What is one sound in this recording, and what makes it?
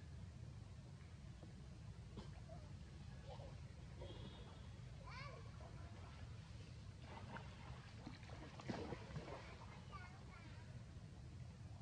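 A small monkey splashes in shallow water.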